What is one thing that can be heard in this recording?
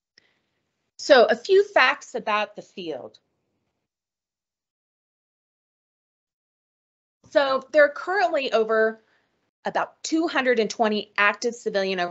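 A woman speaks calmly over an online call, pausing now and then.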